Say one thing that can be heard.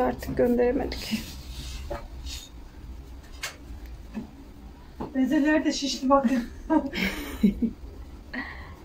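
A middle-aged woman talks calmly nearby.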